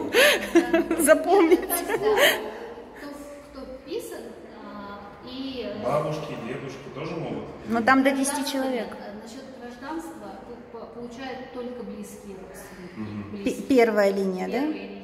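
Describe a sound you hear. A woman talks with animation close by, in a slightly echoing room.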